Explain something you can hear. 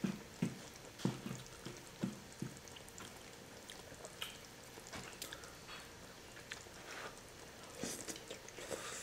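A young man slurps noodles loudly.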